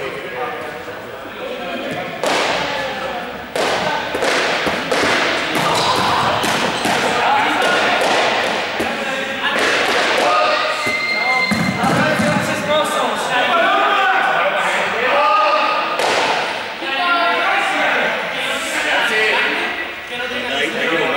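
Young people shout and call out during a game in a large echoing gym hall.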